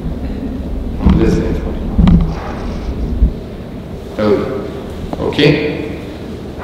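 A middle-aged man speaks calmly and slowly in a large echoing hall.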